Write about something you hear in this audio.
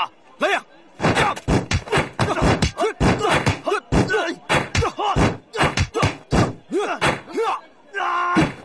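Blows and kicks thud in a fight.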